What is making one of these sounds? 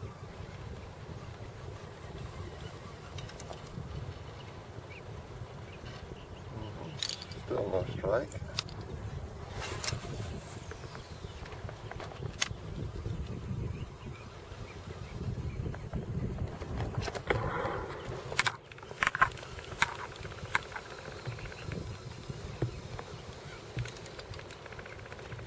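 Wind blusters across open water outdoors.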